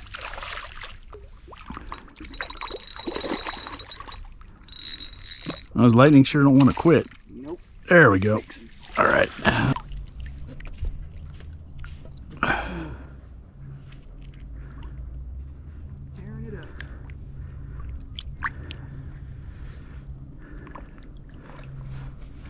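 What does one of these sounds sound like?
A fish splashes in shallow water.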